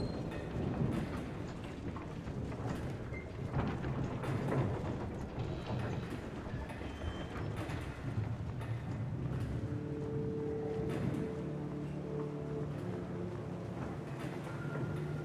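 Footsteps tap on stone steps.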